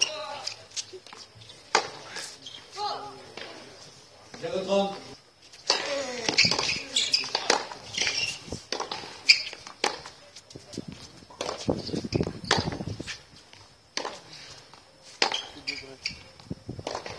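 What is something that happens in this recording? Tennis shoes squeak and scuff on a hard court.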